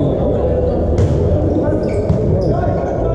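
A volleyball is struck hard in a large echoing hall.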